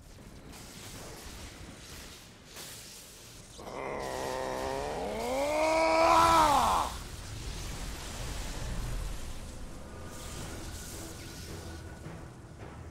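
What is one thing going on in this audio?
Electricity crackles and buzzes.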